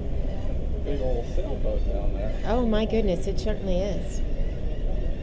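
Gulls cry overhead.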